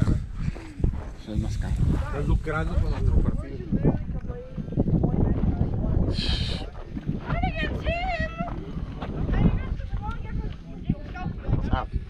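Adult men talk casually close by, outdoors.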